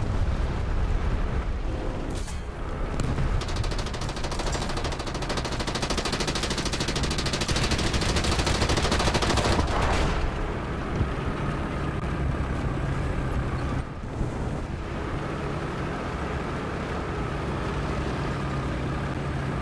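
Tank tracks clatter over snow.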